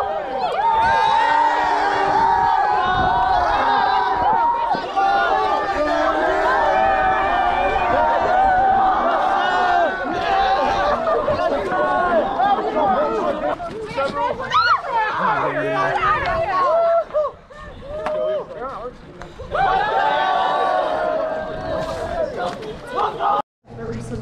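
A crowd of young women cheers and shouts excitedly outdoors.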